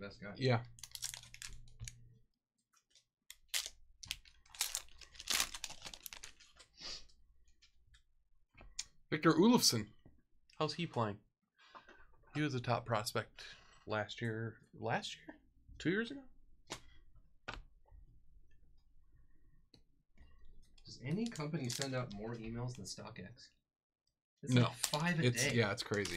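A foil wrapper crinkles as hands tear it open.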